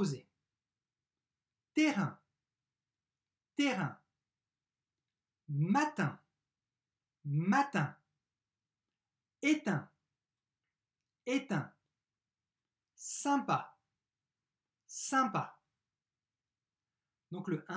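A man says single words clearly and slowly, close to a microphone, with silent pauses between them.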